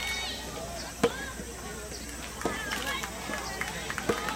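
Tennis balls pop off rackets outdoors.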